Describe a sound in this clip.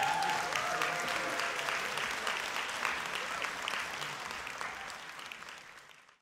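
An audience applauds in a large echoing hall, and the clapping slowly fades.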